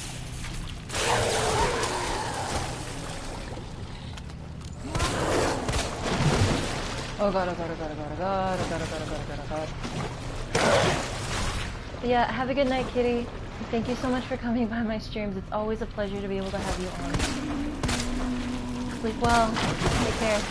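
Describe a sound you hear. A handgun fires sharp shots that echo.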